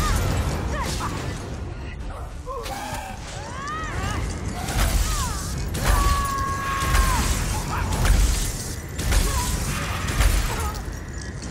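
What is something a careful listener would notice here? A creature screeches.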